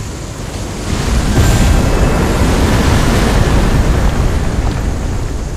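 A loud magical blast roars and crackles.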